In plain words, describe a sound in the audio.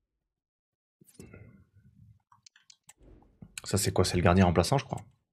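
A young man talks into a microphone close by, with animation.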